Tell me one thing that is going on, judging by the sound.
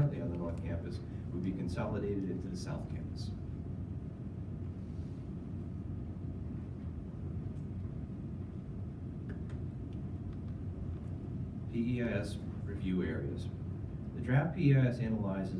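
A man speaks calmly into a microphone in a large room, heard from a distance.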